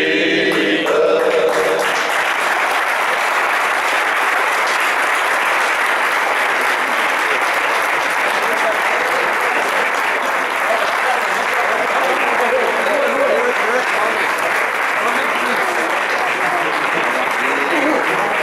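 A group of men chatter loudly together outdoors.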